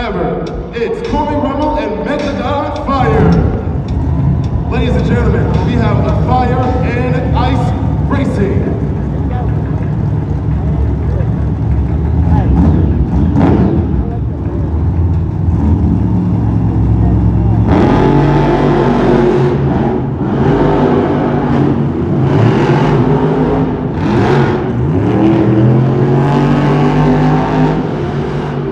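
Monster truck engines roar and rev loudly in a large echoing arena.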